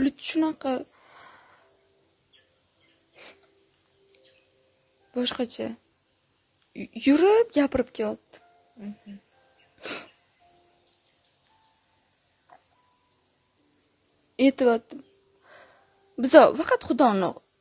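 A young woman speaks calmly and close to a microphone, in short phrases with pauses.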